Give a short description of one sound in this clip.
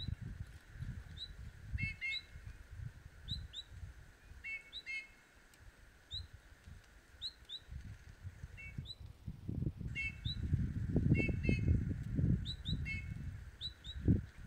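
Small birds chirp in short, repeated calls nearby.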